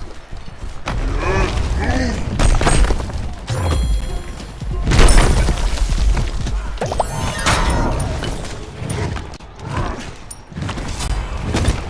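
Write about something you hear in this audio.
Loud explosions boom and crackle.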